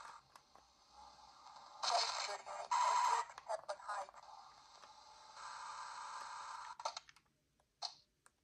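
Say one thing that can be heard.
Tinny handheld game sound effects and engine noises play from a small speaker.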